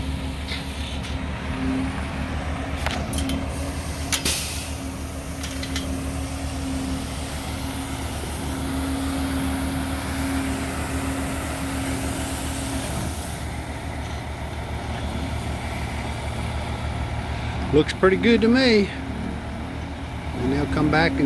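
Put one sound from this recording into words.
A skid steer loader's engine runs and whines nearby.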